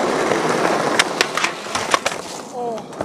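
A skateboard deck snaps and clacks on the ground.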